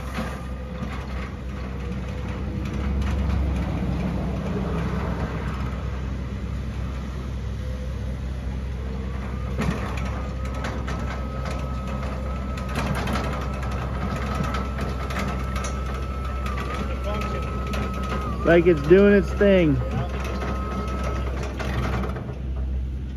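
An electric motor whines steadily as a small lift machine drives along.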